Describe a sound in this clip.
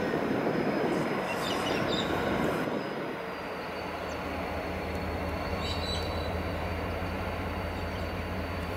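A diesel locomotive engine rumbles steadily nearby.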